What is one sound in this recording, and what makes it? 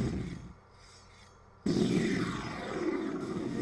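Torch flames roar and crackle.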